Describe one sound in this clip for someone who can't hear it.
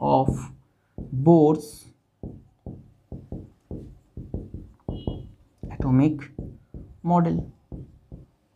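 A man speaks calmly and in short bursts, close by.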